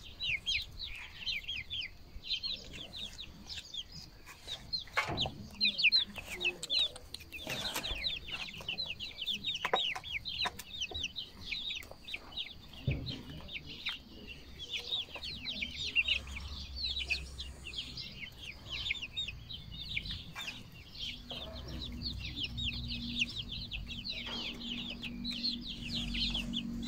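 Young chickens peep and cheep close by.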